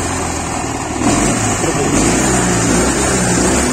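A motorcycle engine revs up when the throttle is twisted.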